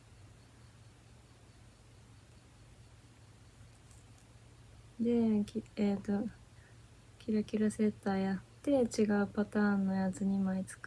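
Knitting needles click softly.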